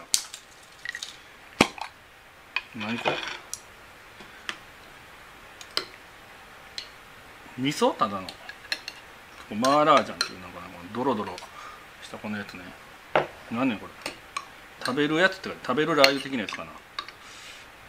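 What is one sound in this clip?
A spoon clinks against a glass jar.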